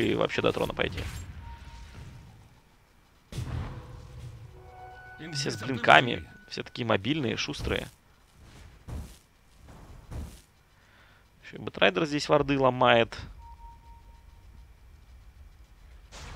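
Magic blasts whoosh and crackle in a fantasy battle game.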